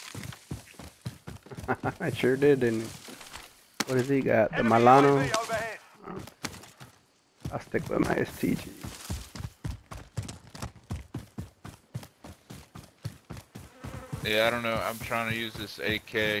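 Footsteps thud quickly on dirt and grass.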